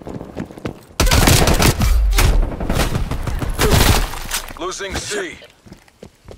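A gun fires loud bursts of shots.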